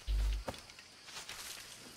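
Leaves rustle as someone pushes through a bush.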